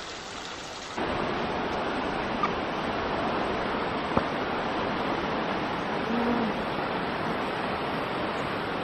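A river rushes nearby.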